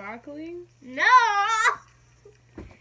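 A young girl laughs.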